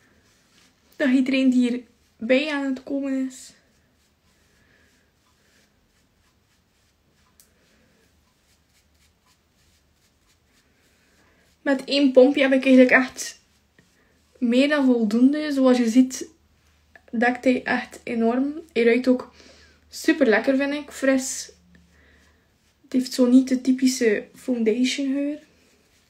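A young woman talks calmly and close to a microphone, in bursts with pauses.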